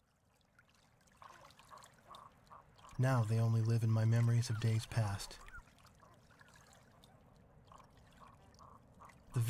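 Ducks call softly on a pond.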